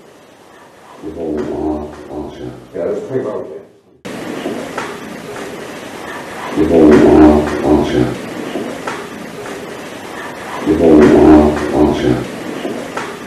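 A man speaks quietly nearby.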